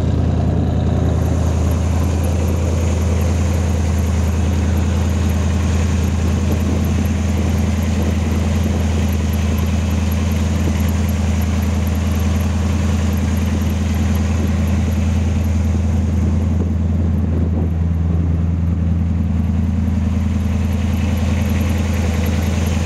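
A big car engine idles with a deep, steady rumble close by.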